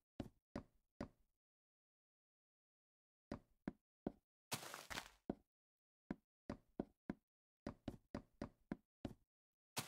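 Footsteps thud on wooden planks in short bursts.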